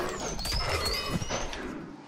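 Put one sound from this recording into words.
A magic blast whooshes.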